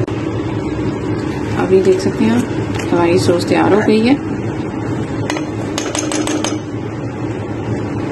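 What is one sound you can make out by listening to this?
A metal spoon stirs and scrapes a pan of thick sauce.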